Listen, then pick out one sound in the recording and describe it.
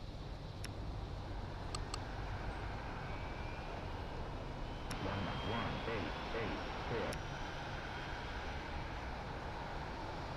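A jet engine hums as an airliner taxis.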